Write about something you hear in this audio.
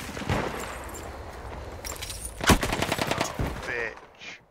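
Gunshots crack rapidly at close range.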